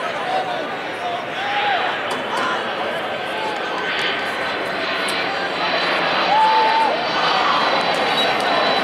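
Men and women in the crowd shout and cheer with excitement.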